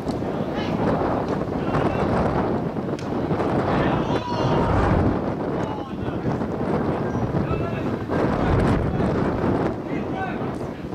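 Young men shout to one another across an open field, at a distance.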